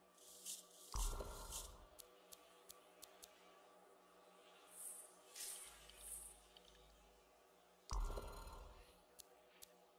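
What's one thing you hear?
A deep whoosh sounds as a menu opens.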